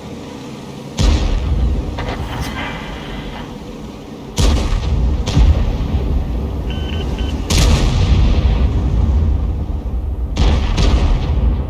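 Tank guns fire with loud booming blasts.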